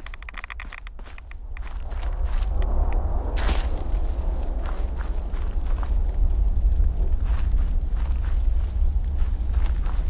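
Fire crackles and roars nearby.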